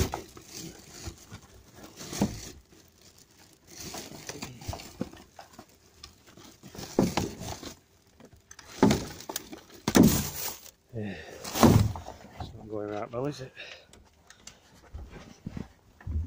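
Plastic bags and wrappers rustle and crinkle.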